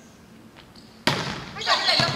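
A volleyball is struck hard with a sharp smack in an echoing hall.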